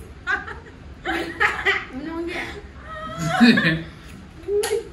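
Young women laugh close by.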